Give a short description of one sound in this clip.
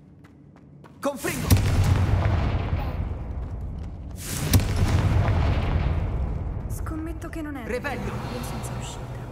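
A magic spell bursts with a loud rushing whoosh.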